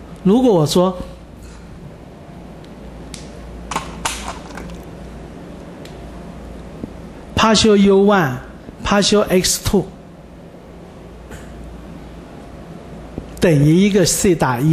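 An elderly man speaks calmly in short bursts, heard through a microphone.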